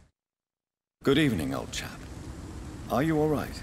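A man speaks in a friendly, polite tone, close by.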